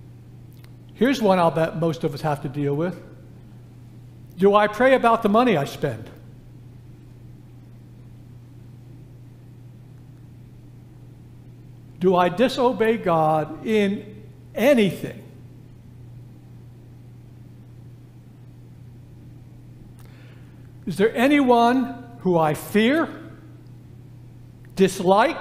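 An elderly man speaks slowly and deliberately through a microphone, with long pauses, in a room with some echo.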